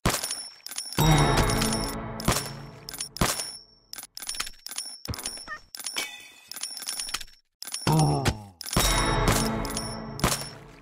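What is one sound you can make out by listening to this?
A game chime sounds when a new level begins.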